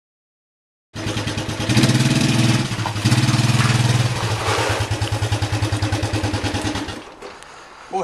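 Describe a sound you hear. A small quad engine idles loudly close by.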